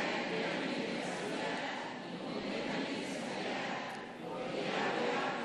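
An elderly man chants into a microphone in a steady, droning voice.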